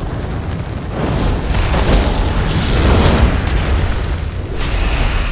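A spell crackles and bursts with a fiery whoosh.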